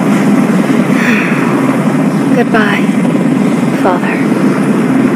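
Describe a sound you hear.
A young woman sighs and speaks softly.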